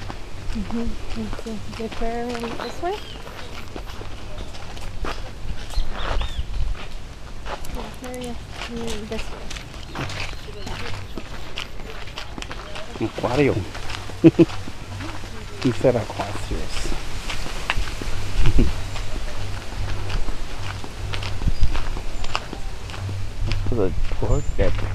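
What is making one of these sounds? Footsteps crunch on a sandy path.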